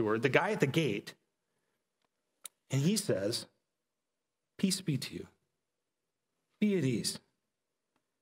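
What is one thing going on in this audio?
A man speaks calmly into a headset microphone, pausing between short phrases.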